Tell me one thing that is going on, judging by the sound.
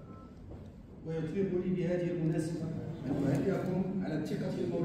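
A man speaks formally through a microphone in an echoing hall.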